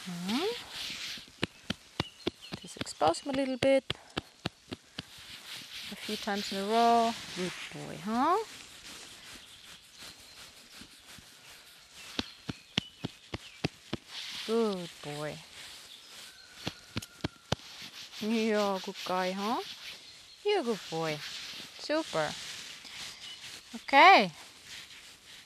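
A young woman speaks calmly and encouragingly nearby.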